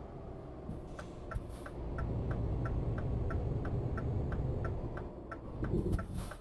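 A turn signal ticks in a steady rhythm.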